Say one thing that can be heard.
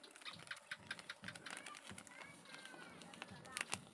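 A plastic packet rustles and crinkles.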